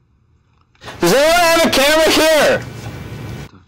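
A man shouts loudly in a drawn-out, wavering voice.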